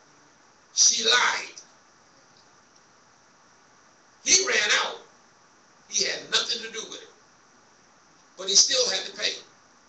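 A man preaches loudly through a microphone in short bursts, echoing in a large room.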